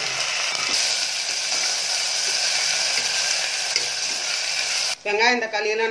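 Food sizzles and hisses loudly in a hot pot.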